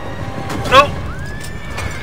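A wooden wagon crashes and tumbles over rocks.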